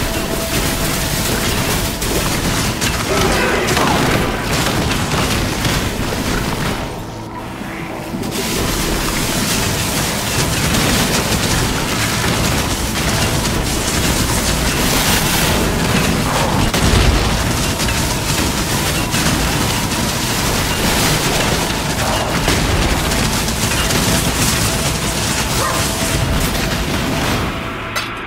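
Game spells crackle and burst with electric zaps and explosions.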